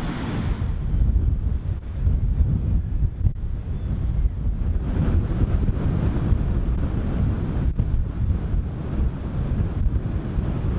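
Waves crash and roll against the cliffs below.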